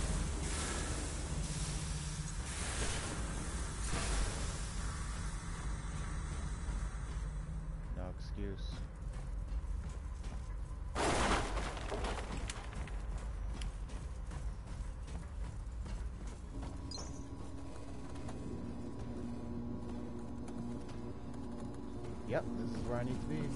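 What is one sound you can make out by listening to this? Heavy metal footsteps clank on a metal floor.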